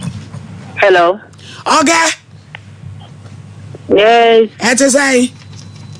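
A woman sings loudly through a microphone in short, drawn-out phrases.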